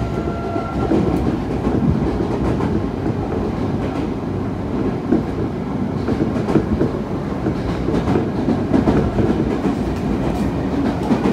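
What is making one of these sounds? A train car rumbles and rattles steadily as it rolls along the track.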